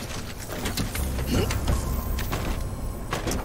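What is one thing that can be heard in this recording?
A vehicle engine starts and rumbles low.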